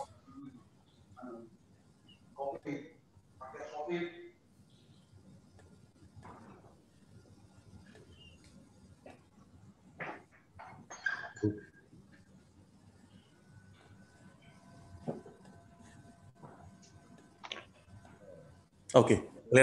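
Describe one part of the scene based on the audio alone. A man speaks quietly and haltingly over an online call.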